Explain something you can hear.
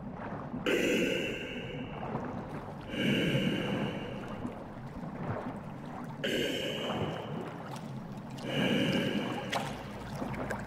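A small underwater vehicle's motor whirs in short repeated bursts.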